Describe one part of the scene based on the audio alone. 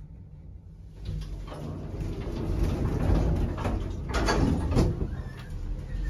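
Elevator doors slide open with a low rumble.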